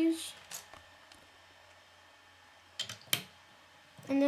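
Plastic toy bricks click and clatter as they are pressed together.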